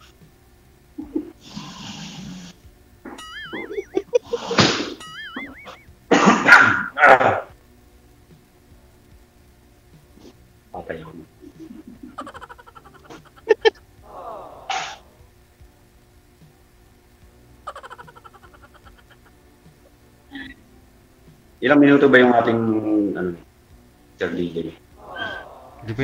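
A woman laughs loudly over an online call.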